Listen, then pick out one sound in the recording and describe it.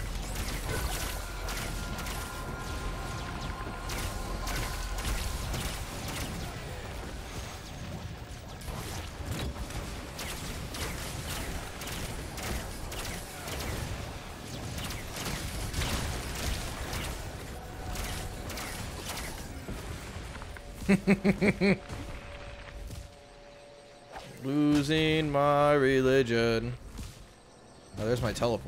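Game sound effects whoosh and zap in quick bursts.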